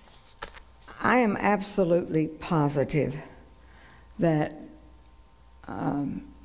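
A middle-aged woman speaks with expression into a microphone.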